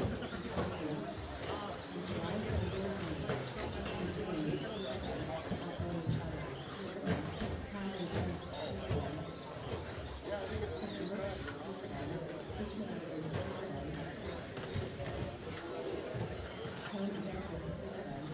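Small electric model cars whine as they race around a track.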